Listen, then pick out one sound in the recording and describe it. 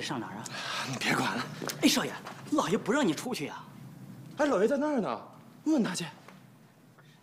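A young man answers curtly, close by.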